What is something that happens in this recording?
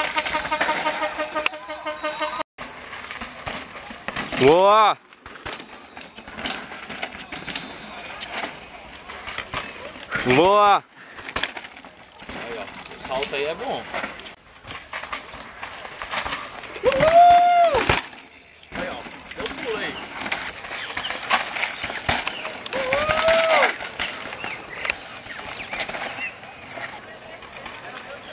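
Bicycle tyres roll and crunch over rocky dirt.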